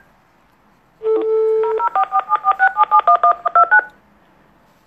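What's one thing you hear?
A handheld electronic device plays a quick run of beeping tones.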